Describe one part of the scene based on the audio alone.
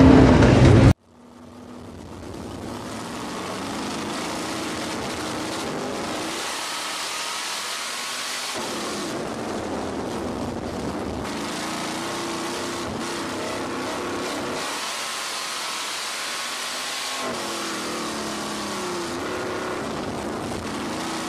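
Race car engines idle and rumble nearby.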